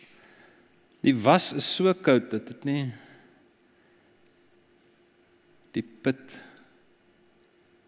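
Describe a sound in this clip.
An older man speaks calmly into a microphone in an echoing hall, with long pauses.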